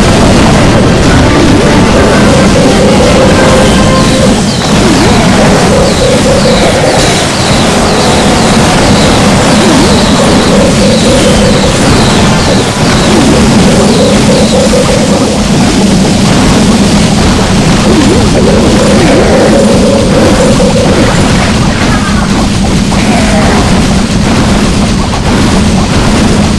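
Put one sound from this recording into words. Fantasy battle sounds clash and crash, with buildings crumbling.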